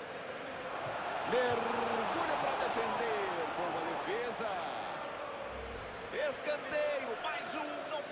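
A stadium crowd roars loudly.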